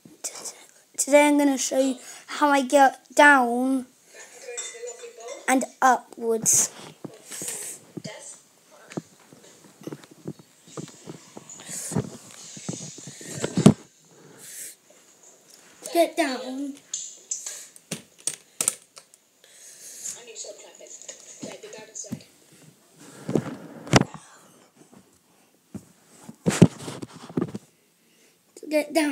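A young boy talks with animation close to the microphone.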